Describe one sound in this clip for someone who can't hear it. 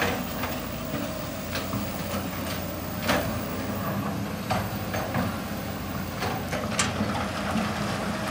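Rocks clatter and knock as excavators scoop and dump them.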